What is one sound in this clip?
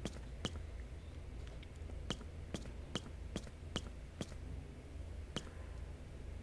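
Footsteps tap quickly across a wooden floor.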